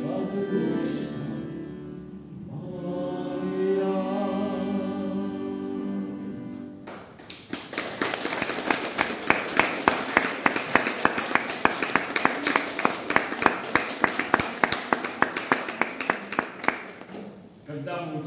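An accordion plays a tune in an echoing hall.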